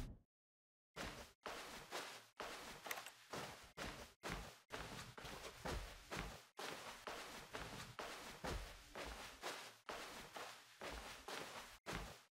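Footsteps tap steadily along a hard floor.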